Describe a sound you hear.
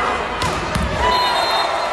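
A ball is struck with a sharp smack.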